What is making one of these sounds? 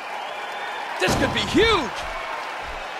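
A heavy body slams onto a mat with a loud thud.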